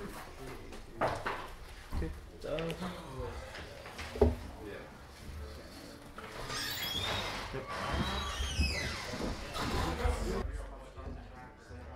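Plastic game pieces click on a table.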